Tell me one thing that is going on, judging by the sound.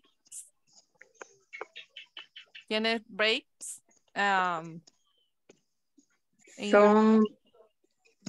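A woman speaks slowly and clearly over an online call.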